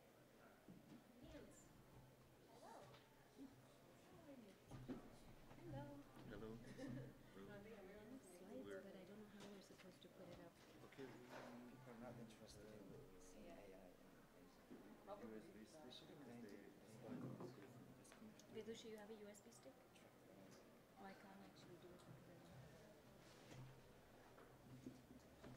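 Men and women chat quietly at a distance in a large, echoing room.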